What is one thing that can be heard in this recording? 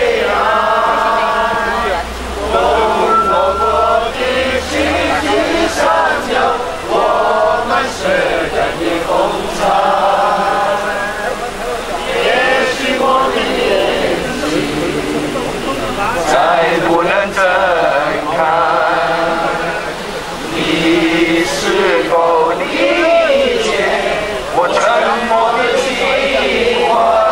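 A crowd sings along together.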